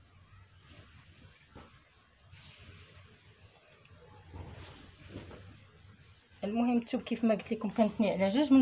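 Fabric rustles softly as cloth is spread out and smoothed.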